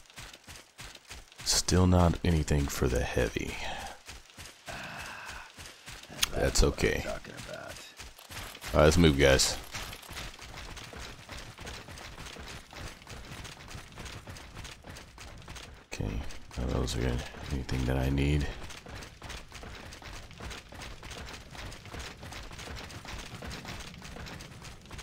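Heavy armoured footsteps thud over grass and metal floors.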